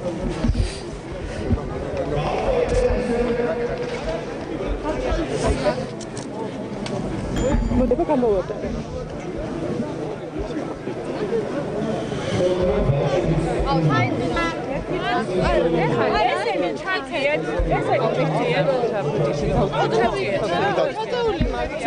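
A crowd of children and adults sings together outdoors.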